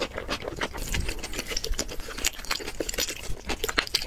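Crispy roast meat crackles as hands tear it apart.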